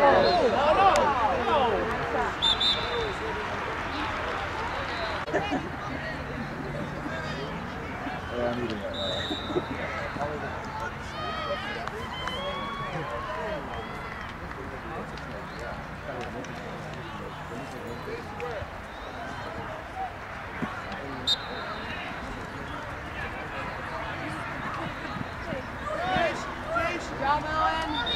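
A crowd of spectators chatters and shouts across an open field.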